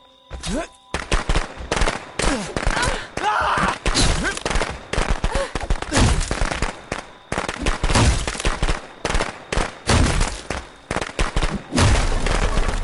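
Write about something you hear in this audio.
A heavy blade chops repeatedly into a wooden door.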